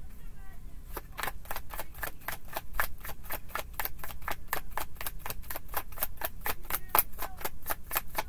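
A deck of cards is shuffled with quick, rapid flicking.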